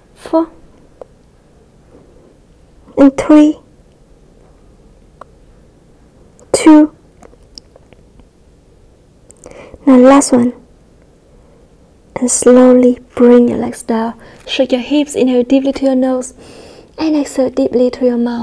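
A young woman speaks calmly and clearly, as if giving instructions.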